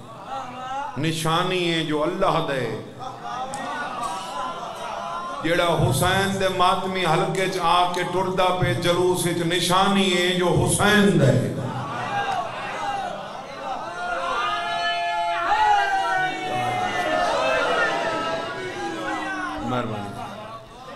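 A man speaks passionately into a microphone, his voice carried through a loudspeaker.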